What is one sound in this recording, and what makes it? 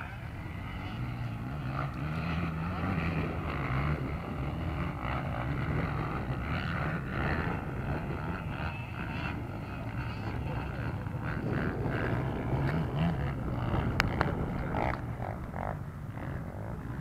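A racing engine roars and revs in the distance.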